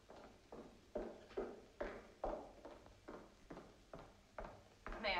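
High heels click at a steady walking pace on a hard floor in a large echoing hall, growing closer.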